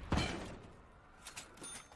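A heavy gun fires a loud blast that echoes away.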